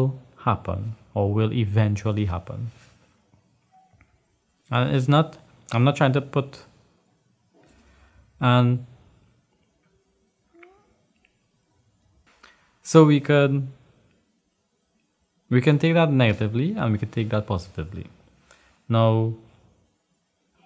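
A man speaks calmly and thoughtfully into a close microphone, with long pauses.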